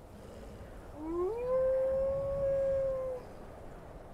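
A wolf howls close by.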